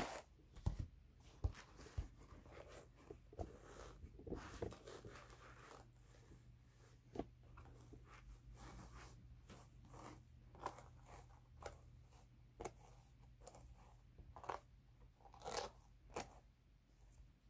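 Hands softly rub and pull at wool fibres.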